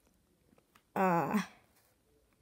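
A handheld game console gives a short, bright tuneful sound.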